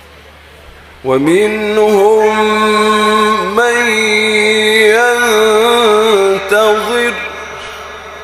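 A man chants in a long, melodic voice through a microphone, with the sound echoing.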